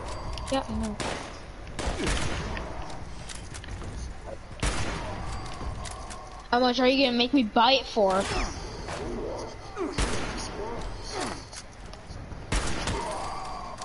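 Gunshots ring out in short, loud bursts.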